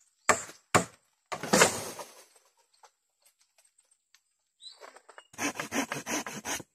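A machete chops into bamboo.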